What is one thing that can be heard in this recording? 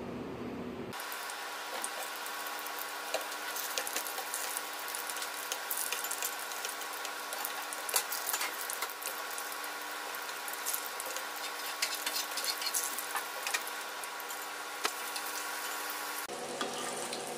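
Food sizzles and crackles as it fries in hot oil.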